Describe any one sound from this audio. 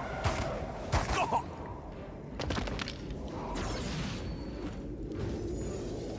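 A wall of fire roars and crackles steadily.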